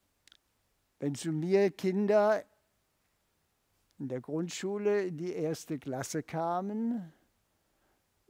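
An elderly man speaks expressively through a microphone.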